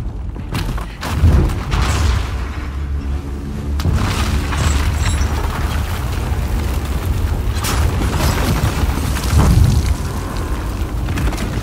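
A metal structure creaks and groans as it collapses.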